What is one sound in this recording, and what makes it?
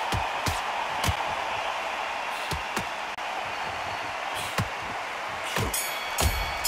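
Gloved punches thud against a body in quick bursts.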